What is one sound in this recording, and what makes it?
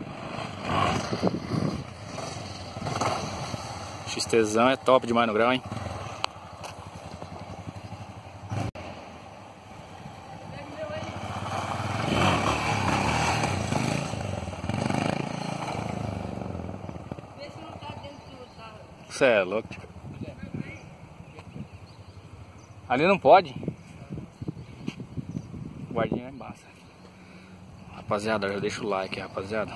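A single-cylinder trail motorcycle revs hard and accelerates.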